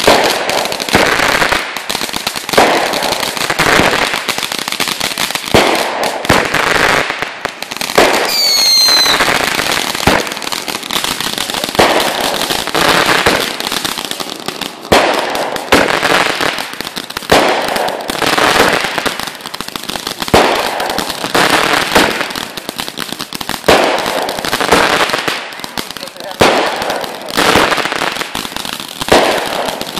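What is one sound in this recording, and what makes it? Fireworks burst with sharp bangs, one after another.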